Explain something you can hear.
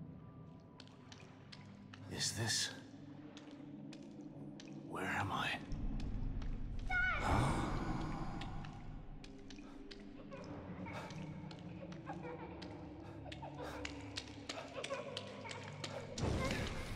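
Water splashes as a man wades through it.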